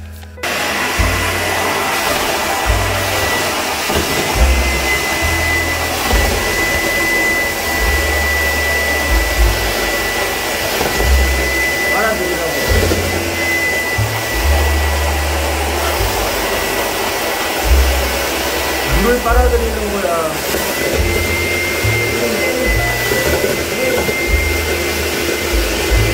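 A vacuum cleaner roars steadily with a high whine.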